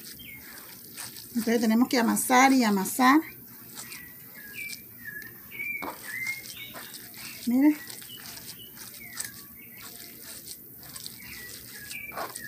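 Hands knead and press a crumbly dough with soft rubbing and patting.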